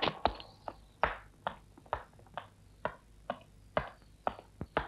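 Footsteps tread steadily on a stone floor.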